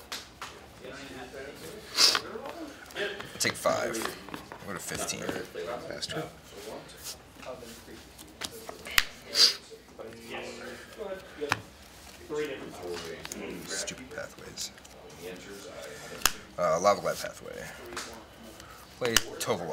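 Playing cards are shuffled and slapped onto a table.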